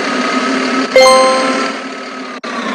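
A bright chime rings out once and fades.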